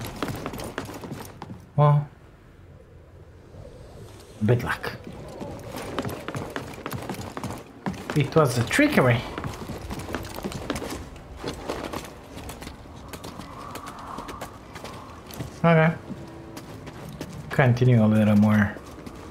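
Footsteps thud quickly across creaking wooden planks.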